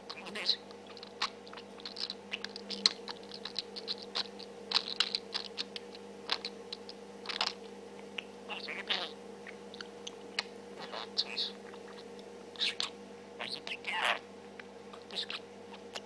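A budgie chirps and chatters close by.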